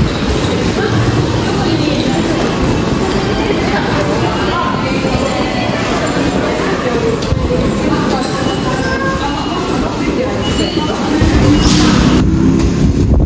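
Footsteps echo in a large hall.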